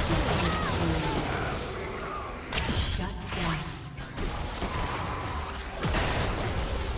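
Fantasy battle sound effects whoosh, clash and crackle.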